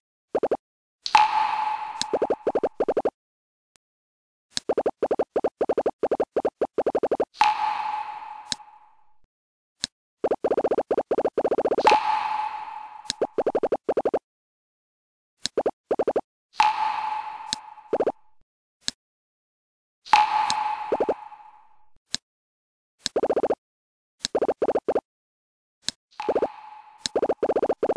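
Rapid electronic blips tick in bursts.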